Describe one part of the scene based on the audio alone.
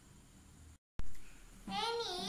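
A young girl shouts excitedly up close.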